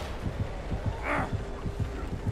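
A man grunts and groans while being carried.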